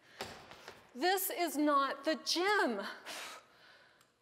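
A young woman speaks loudly with animation nearby.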